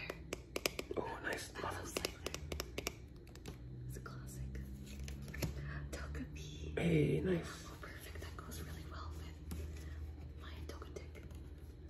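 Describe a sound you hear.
A young man speaks softly close to a microphone.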